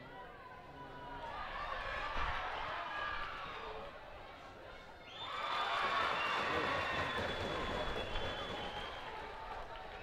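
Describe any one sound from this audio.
A crowd cheers loudly outdoors.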